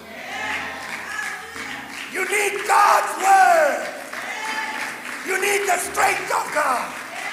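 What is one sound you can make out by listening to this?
A man preaches with animation through a microphone, his voice echoing in a large hall.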